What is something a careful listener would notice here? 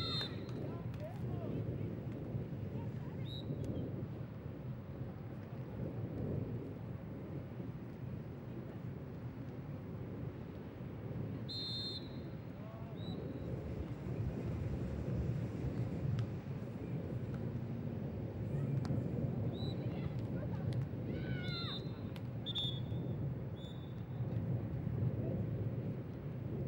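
A volleyball is struck with dull thumps.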